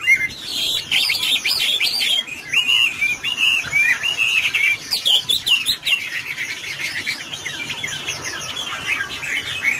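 A songbird sings a loud, varied warbling song close by.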